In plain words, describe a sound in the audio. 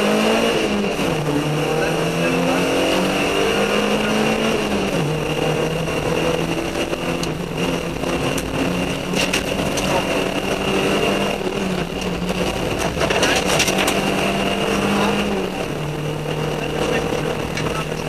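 A car engine hums steadily, its pitch shifting as the car drives.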